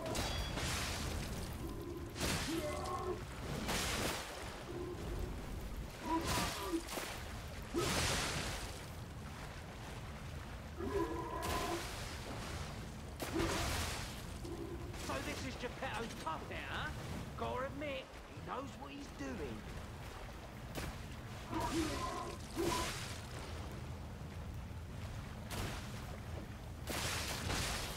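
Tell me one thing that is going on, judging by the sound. Heavy blades swing and clash in sharp, repeated hits.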